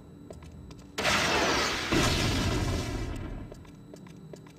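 An explosion roars with a deep rumble and slowly dies away.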